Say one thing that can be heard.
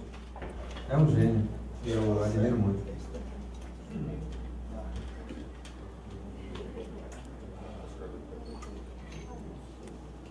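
An acoustic guitar plays softly.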